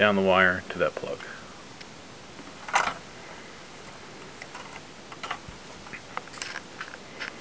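A plastic casing knocks and rattles as it is handled.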